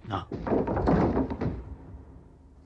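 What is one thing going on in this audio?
Plaster crumbles and crashes down from a cracking wall.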